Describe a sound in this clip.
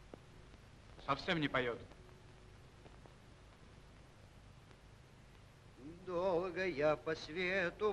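A second man calls out with strain in his voice.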